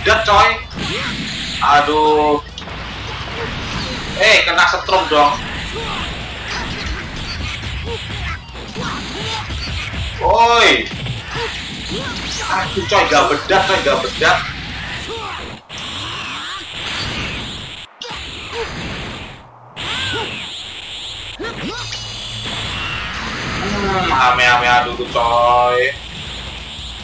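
A young man talks with animation into a close headset microphone.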